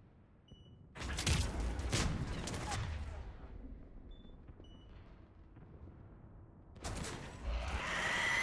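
Gunfire and blasts burst loudly from a video game.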